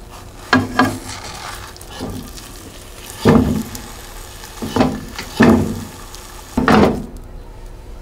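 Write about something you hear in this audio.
A metal spatula scrapes and knocks against a frying pan.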